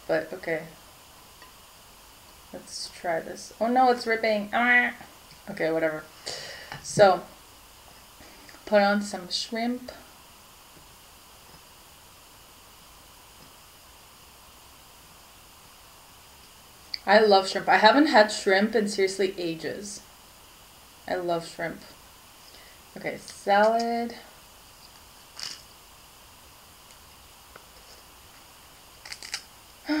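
A young woman talks calmly and close by, in bursts with pauses.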